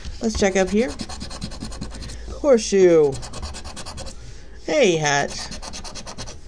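A coin scrapes rapidly across a scratch card.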